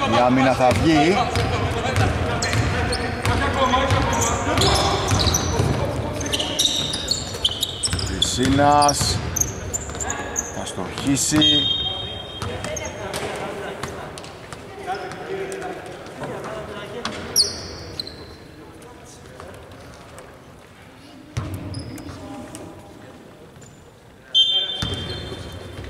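Sneakers squeak on a hardwood court in a large echoing arena.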